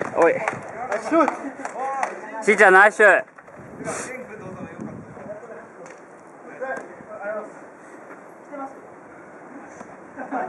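Young men shout and call out to each other nearby, outdoors.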